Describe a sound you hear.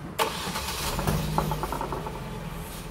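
A car engine cranks and starts.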